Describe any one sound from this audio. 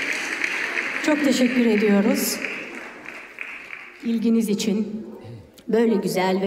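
A woman speaks through a microphone over loudspeakers in a large hall.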